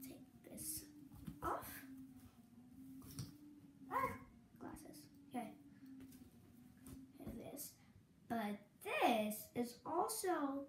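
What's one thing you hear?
Cloth rustles and flaps as a young girl handles it.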